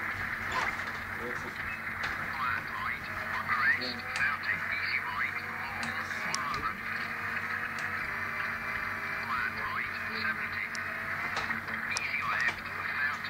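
A racing game's engine drones steadily through a loudspeaker.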